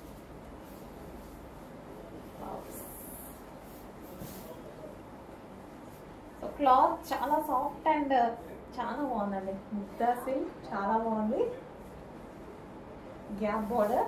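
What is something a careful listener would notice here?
Cloth rustles as it is unfolded and draped.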